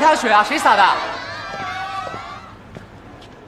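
A young man speaks sharply, close by.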